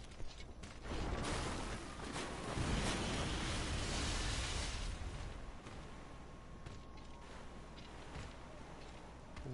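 Water splashes as someone wades through it.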